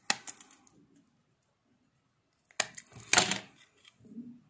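Scissors snip through thin copper wire.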